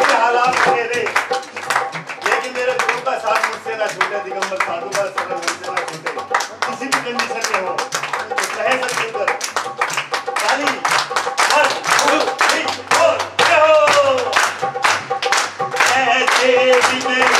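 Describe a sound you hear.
A group of men sing together.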